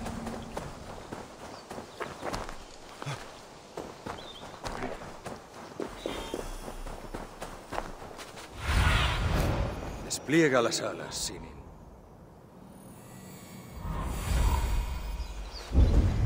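Footsteps crunch through dry undergrowth.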